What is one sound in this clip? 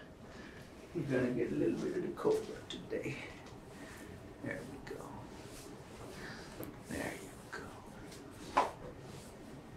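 A man talks quietly nearby.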